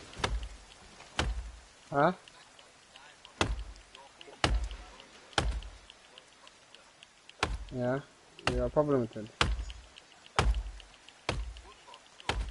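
Sharp knocks strike wood at a steady pace.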